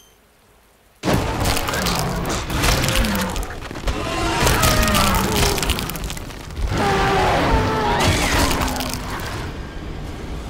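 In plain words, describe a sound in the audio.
A monster growls and roars loudly.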